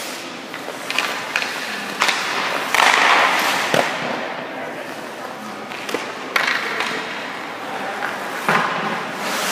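Pucks knock sharply against goalie pads and sticks.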